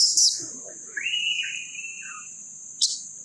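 A baby monkey squeals in short high cries.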